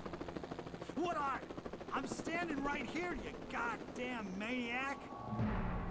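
A middle-aged man shouts angrily.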